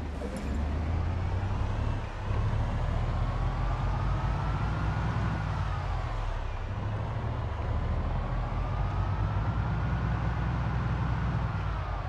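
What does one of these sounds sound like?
A van engine hums steadily, rising and falling in pitch as it shifts gears.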